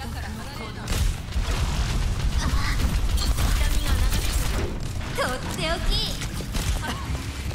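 Explosions boom and rumble in a video game battle.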